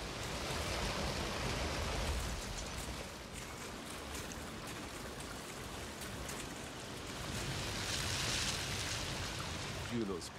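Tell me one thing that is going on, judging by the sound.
A stream rushes and gurgles steadily.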